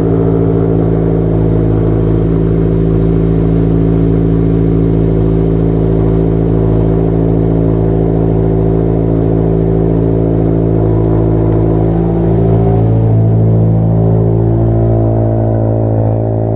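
A car engine idles with a deep, steady burble from the exhaust, rising slightly near the end.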